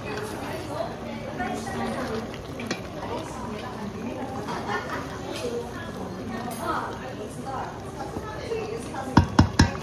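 A wooden spoon stirs food in a metal pot.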